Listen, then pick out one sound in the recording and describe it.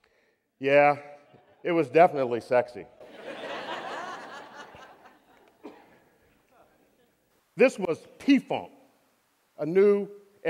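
A man speaks with animation into a microphone in a large hall, pausing between phrases.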